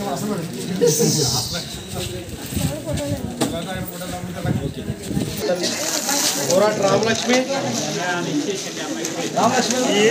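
A plastic bag rustles as it is handed over.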